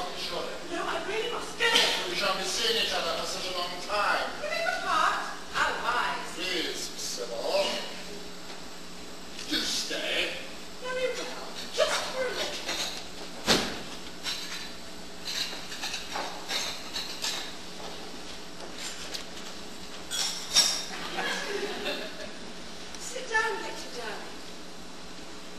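A man speaks loudly with animation, heard from a distance in a hall.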